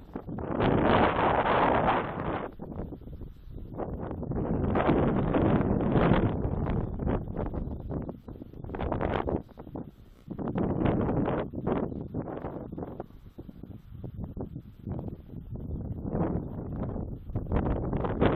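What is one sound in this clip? Wind gusts roar against the microphone outdoors.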